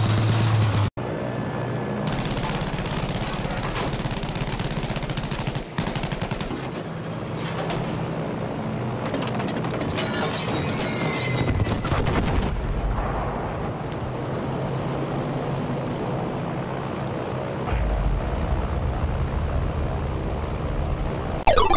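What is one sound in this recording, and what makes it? A twin-engine propeller plane drones in flight.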